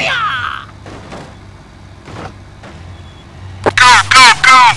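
A car thumps over speed bumps.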